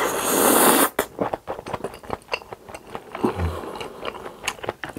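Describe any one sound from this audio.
A young man chews wetly with smacking sounds, close to a microphone.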